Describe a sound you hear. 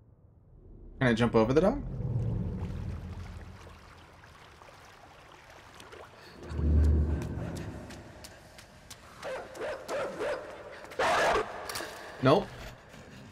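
A young man speaks with animation into a microphone, close by.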